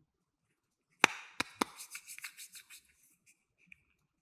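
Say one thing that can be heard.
Soft plastic squeaks and rustles as it is squeezed.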